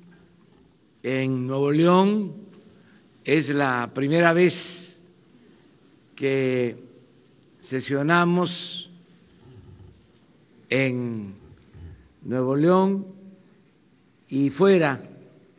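An elderly man speaks slowly and deliberately into a microphone, in short phrases with pauses.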